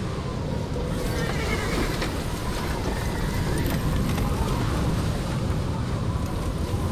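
Horse-drawn wagons rumble and creak along.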